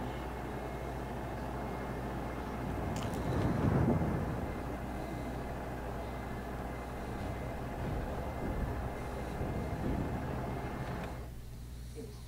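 A ship's engine rumbles steadily over rushing water.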